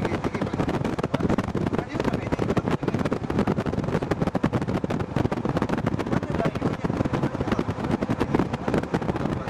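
Wind buffets loudly against a moving vehicle.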